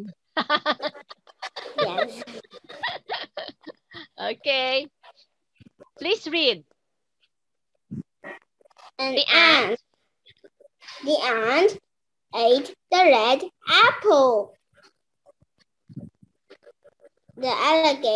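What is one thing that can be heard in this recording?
A young girl repeats words over an online call.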